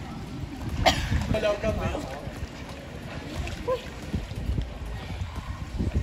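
Water splashes softly as a man swims.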